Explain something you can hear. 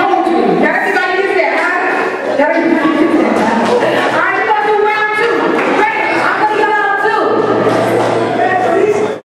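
Music with singing plays loudly over speakers in a large echoing hall.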